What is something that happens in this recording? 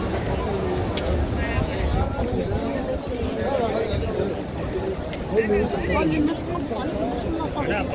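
A large crowd of men and women murmurs and talks outdoors.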